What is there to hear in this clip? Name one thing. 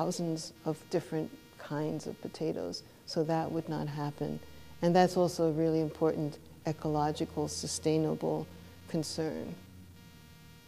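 A middle-aged woman speaks calmly and explains, close to a microphone.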